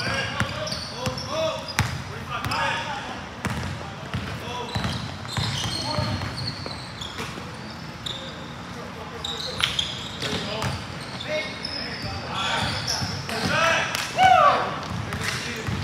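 Young men shout and call out to each other across an echoing gym.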